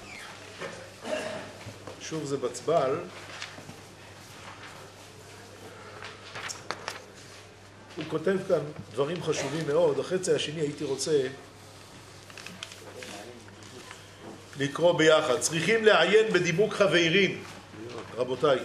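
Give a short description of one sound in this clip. A middle-aged man speaks slowly and thoughtfully in a slightly echoing room.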